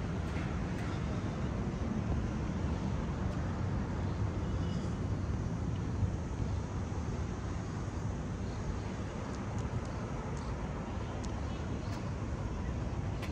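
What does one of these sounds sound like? Wind gusts steadily across the microphone outdoors.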